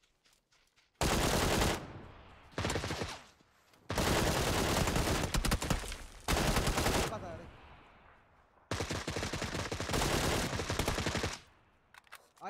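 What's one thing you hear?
A rifle fires loud rapid bursts.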